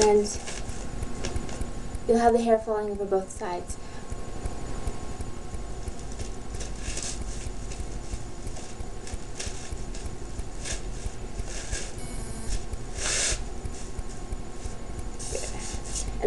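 Hair rustles softly as a wig is brushed with fingers.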